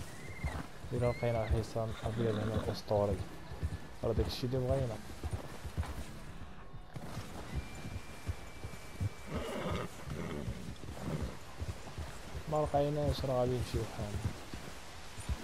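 A horse's hooves crunch through deep snow at a walk.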